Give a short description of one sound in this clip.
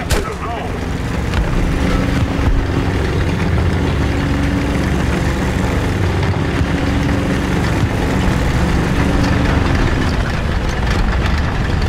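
Tank tracks clank and grind over pavement.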